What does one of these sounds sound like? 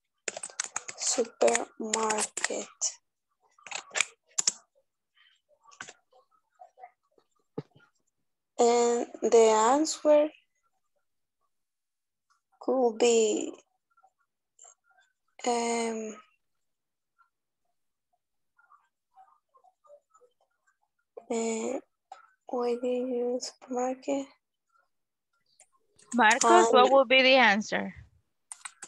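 A young girl speaks in short bursts over an online call.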